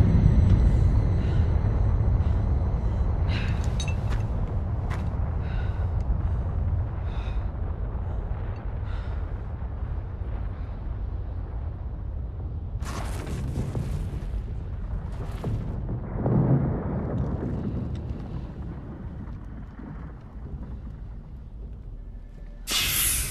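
Wind blows hard outdoors with a low roar.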